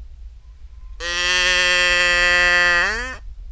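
A cow moos loudly close by.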